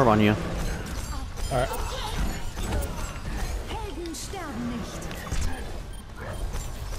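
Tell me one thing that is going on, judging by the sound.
Energy weapons fire in quick bursts in a game.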